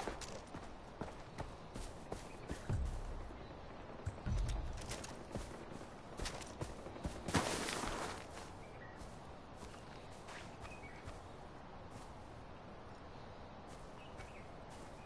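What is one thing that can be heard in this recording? Footsteps rustle and tread through grass.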